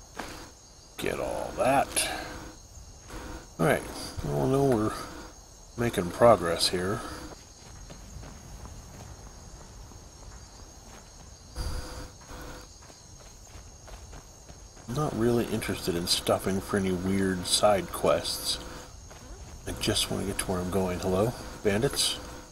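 A man talks calmly and casually into a close microphone.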